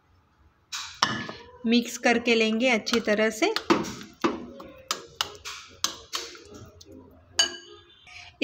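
A metal spoon scrapes and clinks against a glass bowl.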